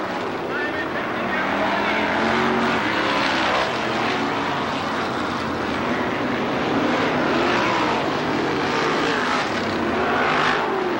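Race car engines roar loudly as they speed around a dirt track.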